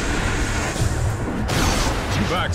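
Magic spells crackle and burst in a fantasy battle.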